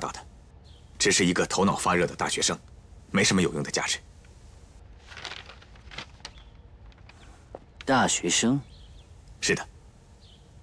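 A young man speaks in a low, firm voice.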